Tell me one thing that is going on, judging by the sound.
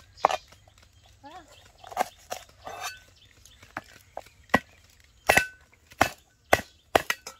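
A cleaver chops through green onions on a cutting board.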